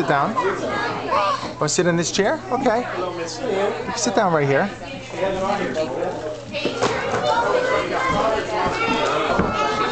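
Children chatter in the background.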